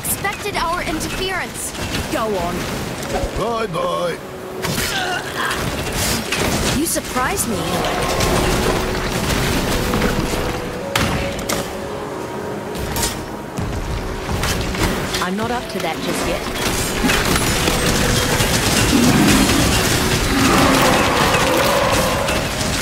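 Magic blasts and hits crackle and thud in a fast fight.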